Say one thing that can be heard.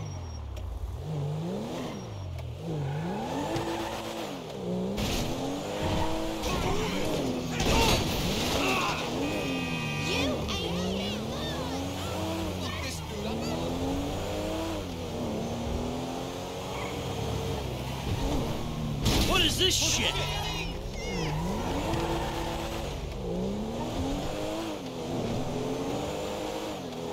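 A car engine revs hard, rising and dropping as it shifts gears.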